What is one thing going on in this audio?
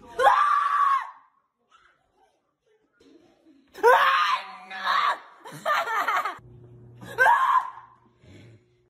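A woman screams loudly in fright, close by.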